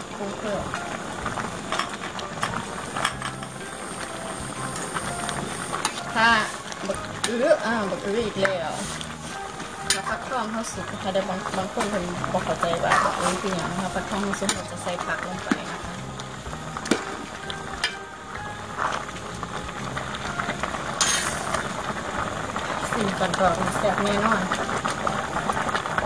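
A stew bubbles and simmers in a pot.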